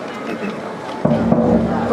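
A brass band starts playing loudly.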